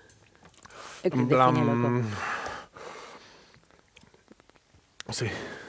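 A man speaks dramatically into a microphone, drawing out his words.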